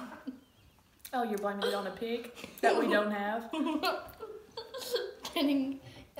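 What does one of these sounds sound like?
A young boy laughs close by.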